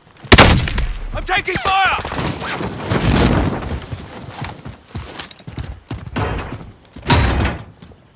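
Footsteps run over hard ground in a video game.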